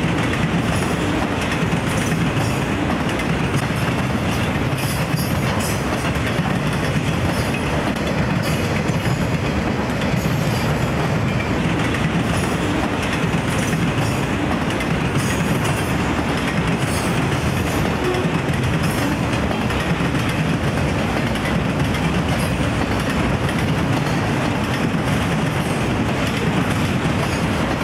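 A long freight train rumbles and rattles steadily past, close by.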